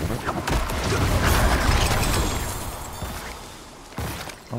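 Magic blasts crackle and rumble loudly.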